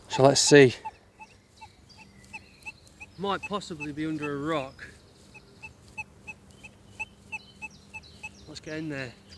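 A metal detector beeps in short, steady pulses.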